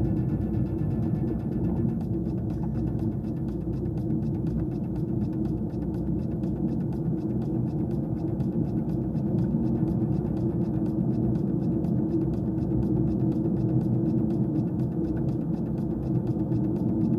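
Tyres rumble over a rough gravel road.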